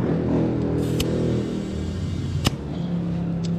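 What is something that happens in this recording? A metal tool clicks against a wheel hub.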